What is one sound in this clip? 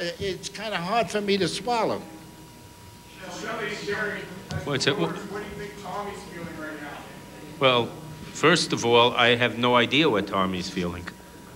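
An elderly man speaks into a microphone with animation.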